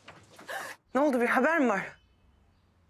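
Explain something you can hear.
A middle-aged man speaks calmly.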